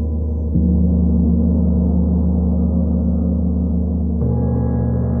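A gong is struck softly with a mallet, and its low tone swells.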